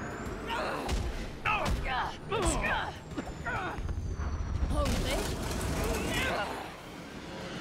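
Heavy blows thud in a close fistfight.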